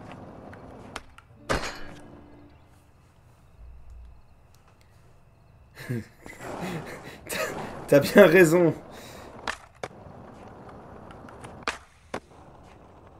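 A skateboard clacks as it lands.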